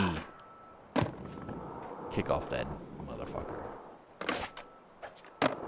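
A skateboard clacks as it lands.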